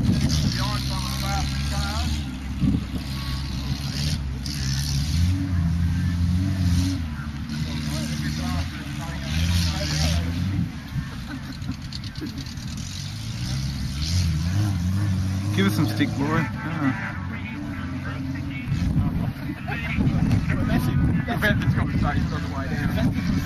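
An off-road car engine revs hard and changes gear as the car races over rough ground.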